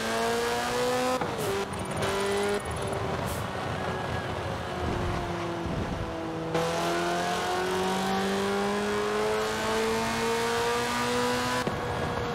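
A racing car engine roars at high revs, dropping in pitch at each gear change and climbing again.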